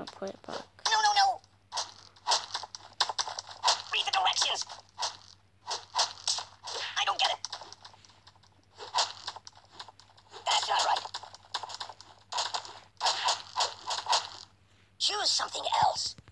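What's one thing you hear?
Cartoon game sound effects of a hammer repeatedly hitting a ragdoll toy.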